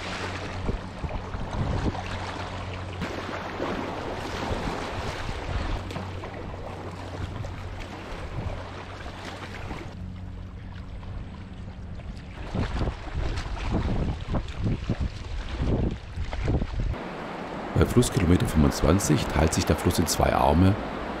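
River water rushes and gurgles around a kayak.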